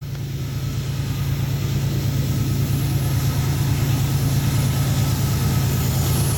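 Diesel locomotives rumble loudly as they approach and grow louder.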